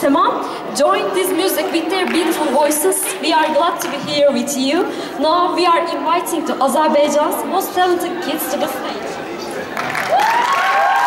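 People talk and murmur near a stage.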